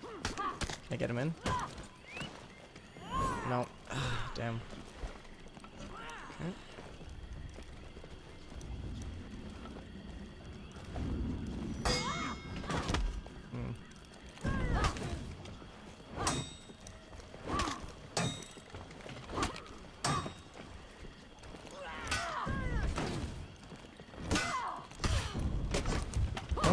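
Warriors grunt and shout as they strike.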